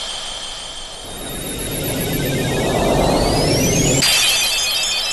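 A swirling magic whoosh rises and fades.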